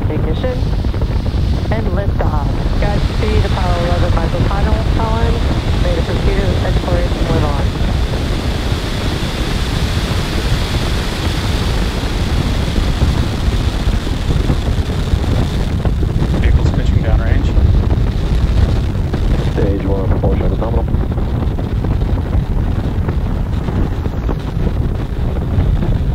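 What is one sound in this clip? A rocket engine roars with a deep, steady rumble.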